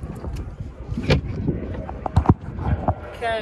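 Hands knock and rub against the microphone.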